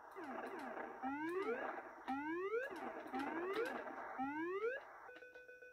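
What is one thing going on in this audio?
A retro video game sounds rising tones in quick repeats.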